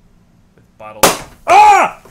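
A bottle pops open with a sharp bang.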